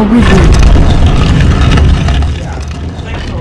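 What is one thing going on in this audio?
A heavy stone door rumbles and grinds as it slides open.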